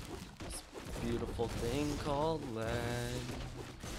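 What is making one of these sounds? A pickaxe thuds against a tree in a video game.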